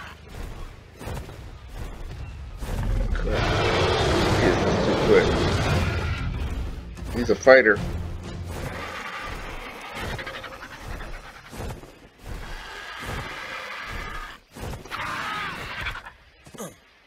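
Large wings flap with heavy whooshes.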